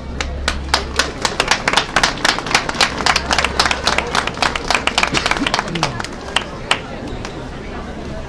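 A crowd applauds and claps outdoors.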